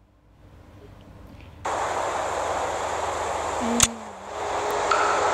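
Fireworks pop and crackle faintly in the distance.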